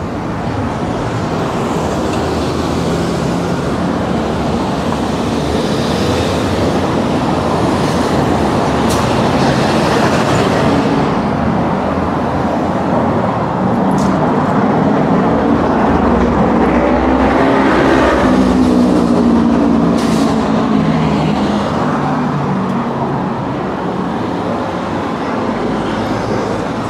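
City traffic rumbles steadily along a busy road outdoors.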